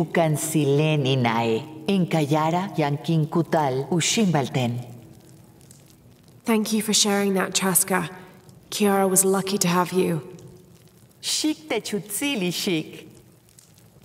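An elderly woman speaks calmly and warmly, close by.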